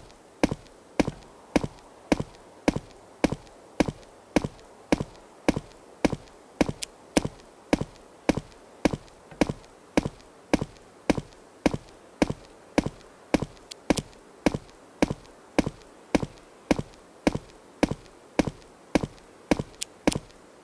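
Footsteps tread steadily through grass at a walking pace.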